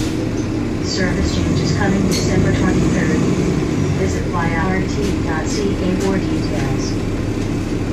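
A woman talks at a distance, muffled by the engine noise.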